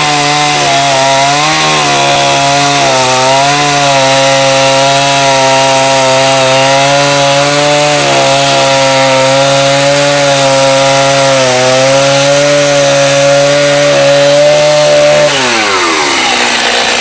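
A chainsaw runs at high speed, cutting through a log, then winds down.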